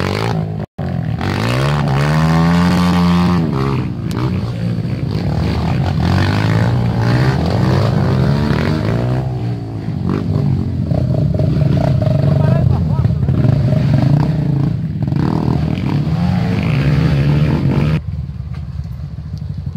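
Dirt bike engines rev and roar close by, rising and falling in pitch.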